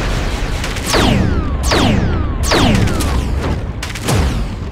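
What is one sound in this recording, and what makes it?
Laser blasts zap with falling, whooshing tones.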